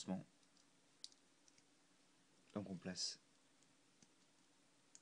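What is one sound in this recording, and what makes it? Small plastic toy parts click softly as they are handled.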